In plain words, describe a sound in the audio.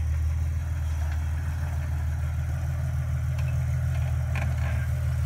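An off-road vehicle's engine idles with a low, steady rumble.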